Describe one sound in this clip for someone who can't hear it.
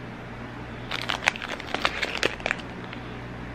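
A plastic package crinkles in a hand.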